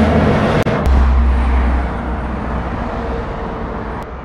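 Bicycle tyres rumble over cobblestones.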